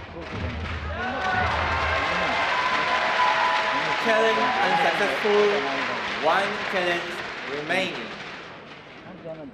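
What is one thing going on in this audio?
A crowd of spectators cheers and shouts in a large indoor arena.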